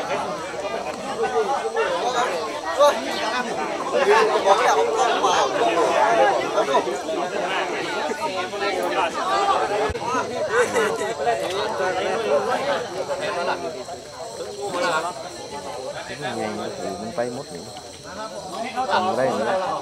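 A crowd of men and children chatters and calls out nearby.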